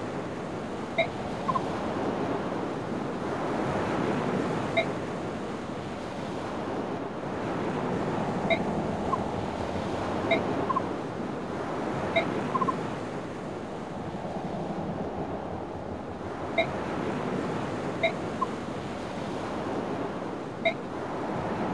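A short soft chime sounds again and again.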